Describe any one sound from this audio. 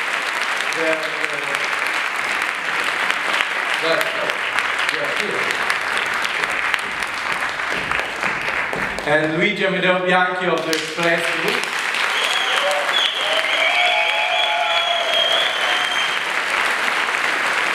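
An audience claps steadily.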